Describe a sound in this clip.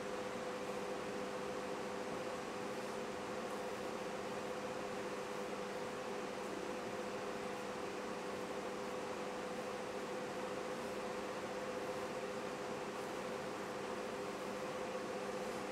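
A hair dryer whirs steadily close by.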